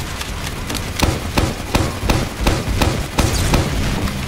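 Rockets fire with sharp bangs and explosions.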